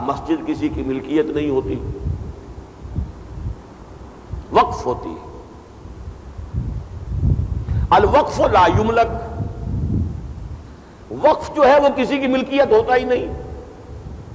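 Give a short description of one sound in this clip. An elderly man speaks in bursts with pauses, close to a microphone.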